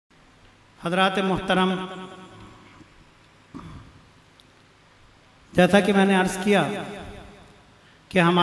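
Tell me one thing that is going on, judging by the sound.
An elderly man sings a devotional chant into a microphone through loudspeakers, with reverberation.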